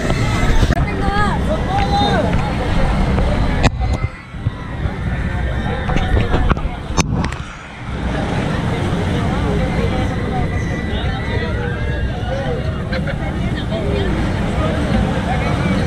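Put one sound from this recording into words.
A fairground ride rumbles as it spins.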